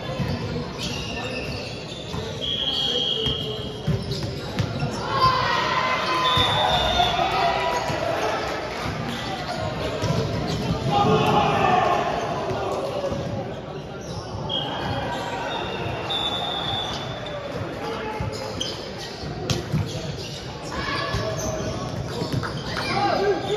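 Players shout and call out to each other in a large echoing hall.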